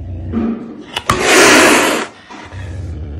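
A caracal hisses loudly.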